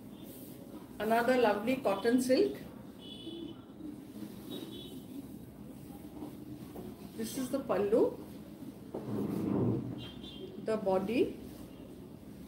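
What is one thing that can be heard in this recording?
A woman speaks calmly and close by in short bursts.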